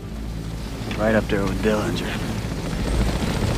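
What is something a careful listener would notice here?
A younger man speaks briefly nearby.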